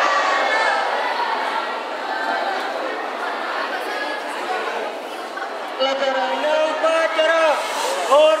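A crowd of young people sings together outdoors.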